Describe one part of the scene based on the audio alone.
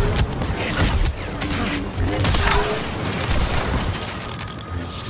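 A lightsaber hums and swings with sharp swooshes.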